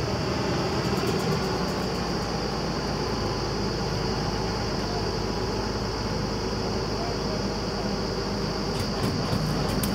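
A drilling rig's engine roars loudly and steadily.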